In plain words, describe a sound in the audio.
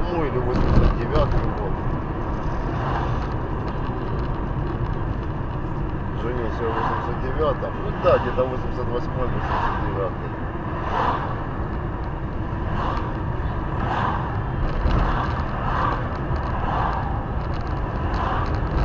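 A car engine hums steadily with road rumble from inside the car.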